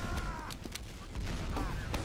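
A gun fires with a loud burst.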